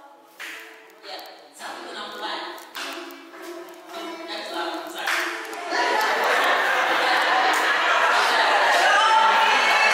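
Live music plays loudly in a large echoing room.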